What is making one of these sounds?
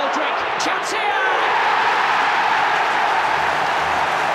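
A large crowd roars and cheers loudly in a stadium.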